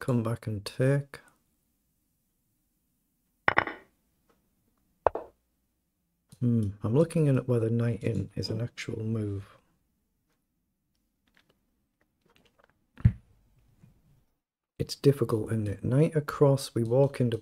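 A man talks calmly and close to a microphone, in short bursts with pauses.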